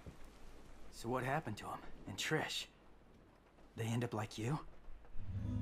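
A young man asks questions in a low, calm voice.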